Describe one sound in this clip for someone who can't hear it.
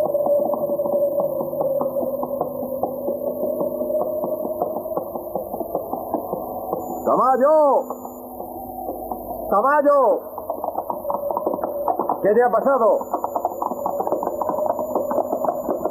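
A horse gallops on a dirt track.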